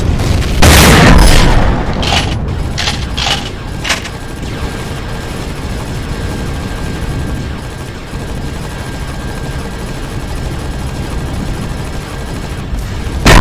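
A ship's engine hums low and steady.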